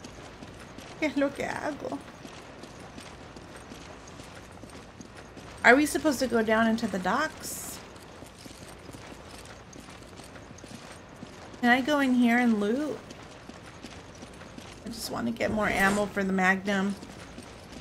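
A young woman talks with animation into a close microphone, in short bursts.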